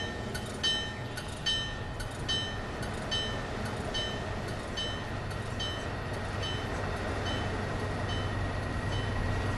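Train wheels clack rhythmically over rail joints, slowing down.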